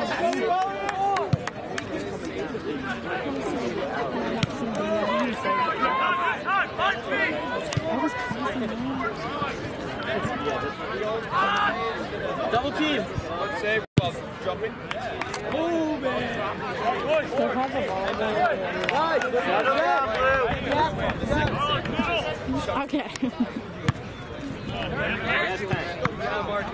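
Young men shout and call out to each other across an open outdoor field.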